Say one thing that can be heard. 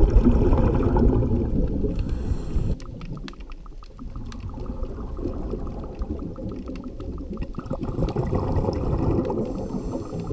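Water rumbles in a low, muffled way underwater.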